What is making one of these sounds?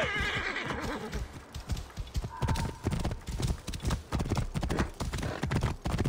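Horse hooves gallop on dry ground.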